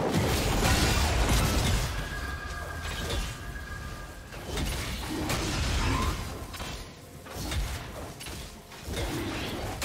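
Game battle effects clash and boom.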